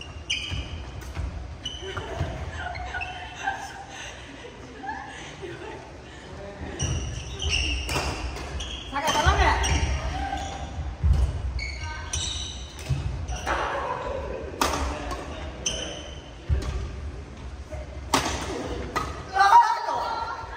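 Shoes squeak sharply on a wooden court.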